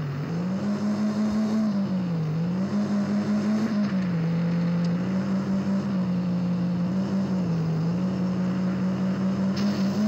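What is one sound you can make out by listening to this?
A car engine hums steadily, its pitch rising and dipping slightly as it drives.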